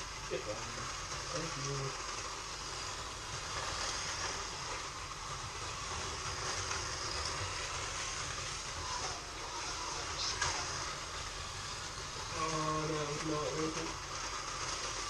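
A man talks in the background.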